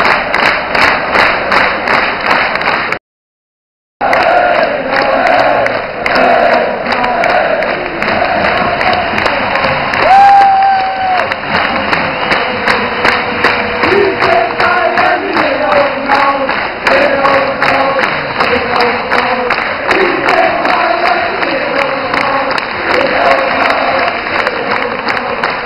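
Many fans clap in rhythm close by.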